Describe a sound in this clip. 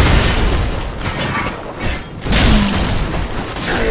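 A large armoured body crashes heavily to the ground.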